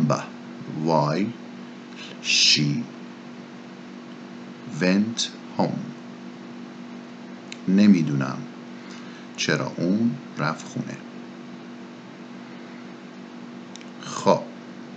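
A man speaks calmly in short phrases into a close microphone, with pauses.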